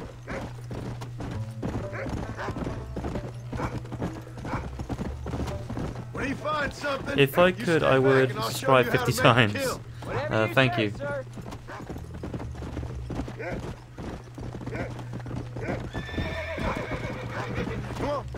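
Horse hooves thud steadily at a gallop on dry ground.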